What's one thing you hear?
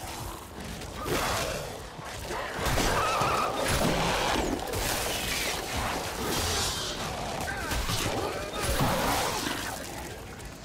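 A blade slashes and squelches into a creature's flesh.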